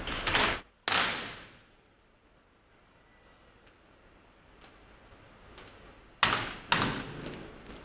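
Rifles slap sharply in unison, echoing through a large hall.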